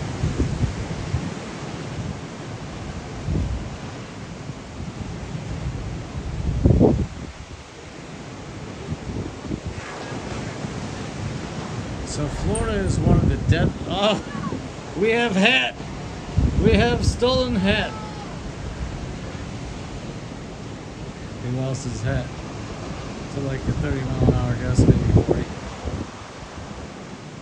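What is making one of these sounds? Wind blows in strong gusts outdoors.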